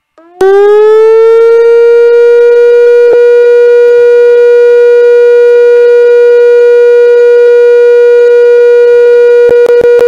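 A loud, steady electronic tone plays.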